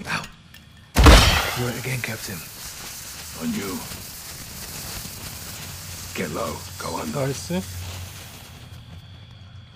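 Gas hisses steadily and then stops.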